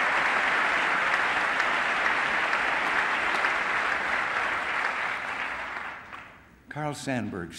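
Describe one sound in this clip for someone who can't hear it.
An audience applauds loudly in a large hall, and the applause fades.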